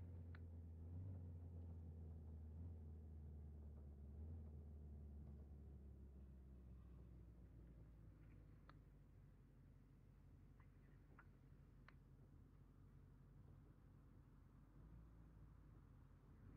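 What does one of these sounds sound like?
A car engine hums low and steady, then quietens.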